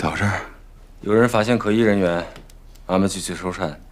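A young man speaks firmly close by.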